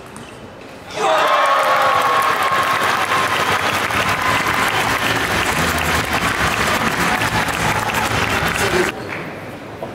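A large crowd cheers and applauds loudly in an echoing arena.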